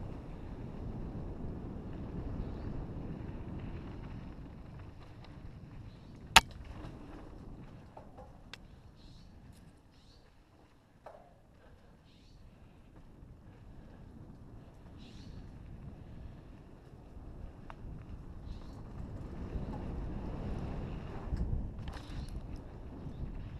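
Wind rushes and rumbles past, loud at times.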